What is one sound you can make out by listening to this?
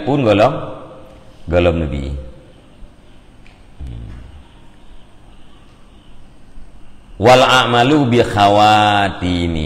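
A middle-aged man chants slowly into a headset microphone, with long pauses.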